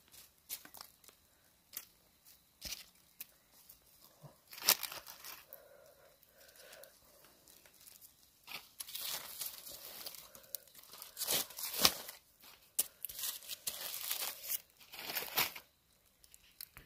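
Smouldering embers crackle and pop in a small fire.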